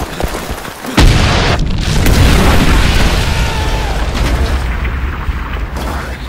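A heavy blast booms and rumbles on.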